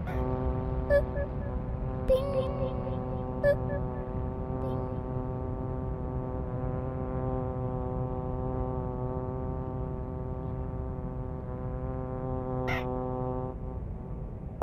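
A small plane's engine drones steadily, then stops.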